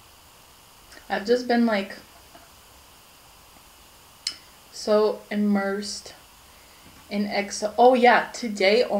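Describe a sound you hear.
A young woman speaks calmly, close by.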